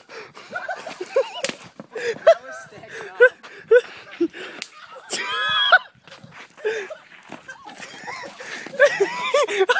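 Young men shout and laugh excitedly nearby.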